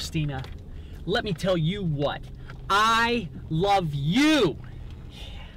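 An adult man shouts with passion inside a car.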